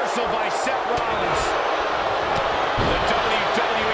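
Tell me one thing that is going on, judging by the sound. A body slams down hard on a wrestling ring mat.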